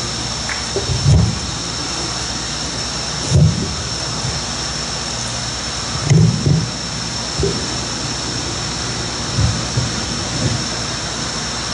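A microphone thumps and bumps as it is handled.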